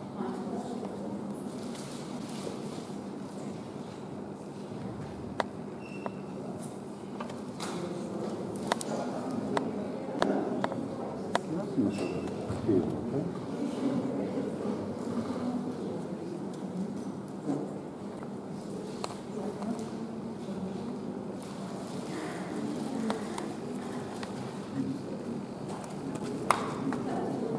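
A crowd murmurs and chatters in a large room.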